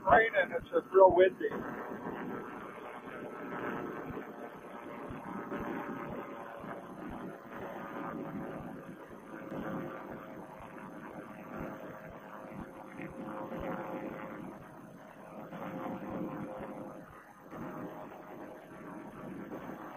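An aircraft engine drones steadily close by.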